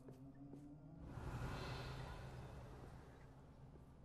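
A magic spell bursts with a sparkling whoosh.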